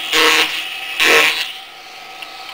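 A carving knife scrapes and shaves wood.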